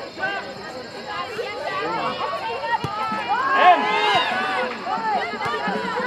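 A soccer ball is kicked with dull thumps.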